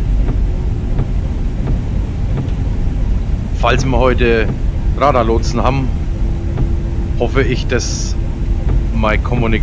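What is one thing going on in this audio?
Rain patters on a windshield.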